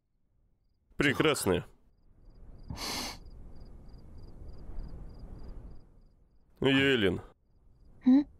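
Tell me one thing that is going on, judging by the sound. A young man speaks softly and close by.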